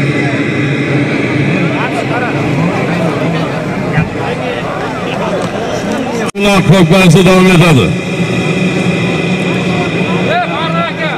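A crowd of men talks and calls out all around, outdoors.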